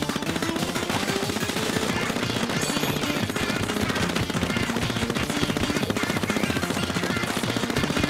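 Ink guns spray in rapid bursts.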